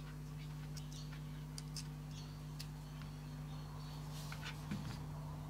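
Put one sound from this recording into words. Small metal parts click and tap as hands handle them.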